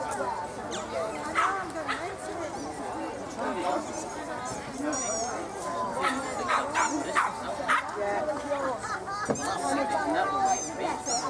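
Several men and women chatter outdoors at a distance.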